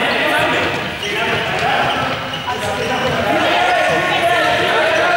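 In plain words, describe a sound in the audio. Many young people talk and call out in a large echoing hall.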